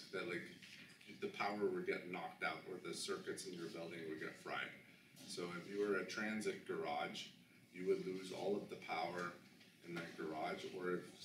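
A man speaks calmly and clearly, with short pauses.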